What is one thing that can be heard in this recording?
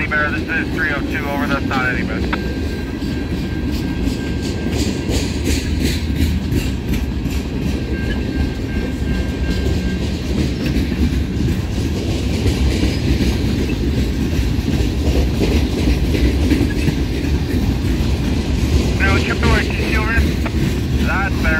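Train wheels squeal against the rails.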